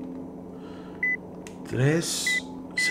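A safe's keypad beeps with short electronic tones.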